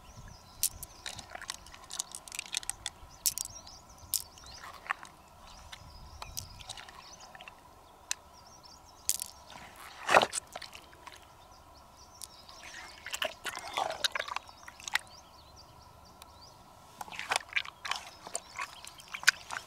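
Fingers squelch and rub through soft wet flesh.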